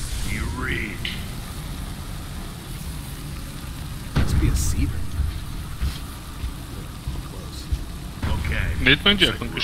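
A cutting torch hisses and crackles against metal.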